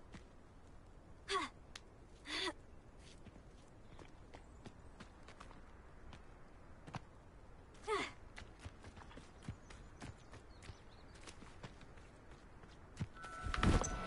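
Footsteps crunch over grass and rock.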